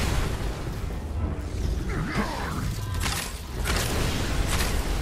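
Magical energy crackles and whooshes.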